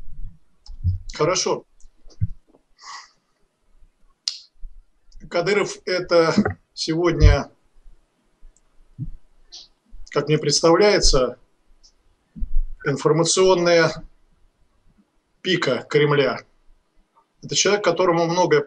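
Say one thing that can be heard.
An older man speaks calmly over an online call, in short phrases with pauses.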